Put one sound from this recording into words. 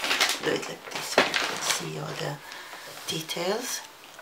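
Large sheets of paper slide and rustle on a table.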